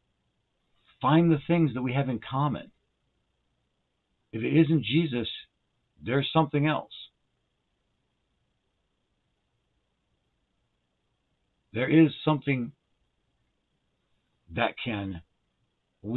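A middle-aged man speaks calmly into a microphone, in short phrases with long pauses.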